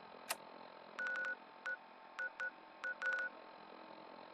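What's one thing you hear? Short electronic beeps sound from a handheld device.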